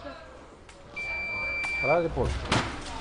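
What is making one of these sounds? An electronic scoring machine beeps steadily.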